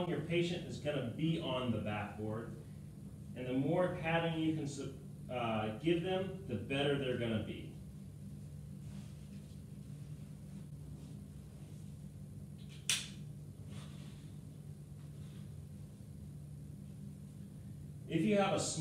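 A man speaks calmly, close by, explaining.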